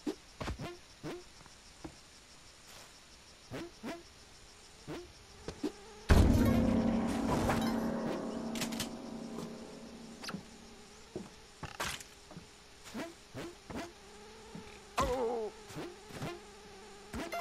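Quick soft thuds of a game character's steps and jumps come now and then.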